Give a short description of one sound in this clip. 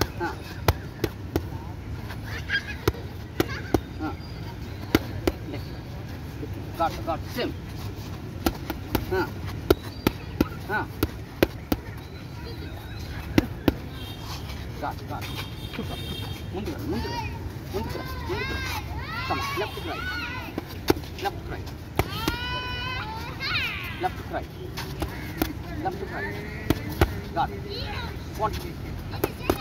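Boxing gloves smack against padded mitts in quick bursts.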